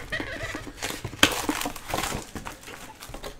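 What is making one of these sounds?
Plastic wrap crinkles as a box is unwrapped.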